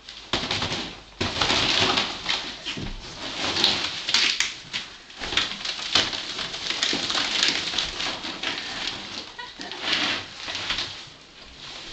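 A flexible plastic hose crinkles and rattles as it is moved.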